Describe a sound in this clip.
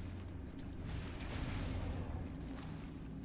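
A blade scrapes and strikes against stone.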